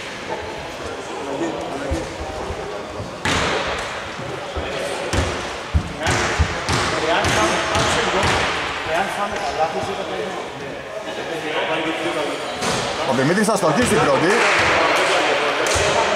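Sneakers squeak on the court.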